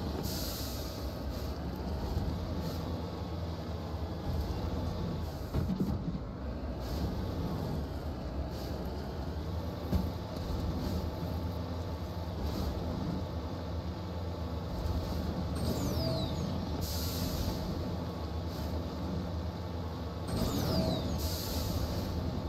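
A vehicle's engine rumbles steadily as it drives over rough ground.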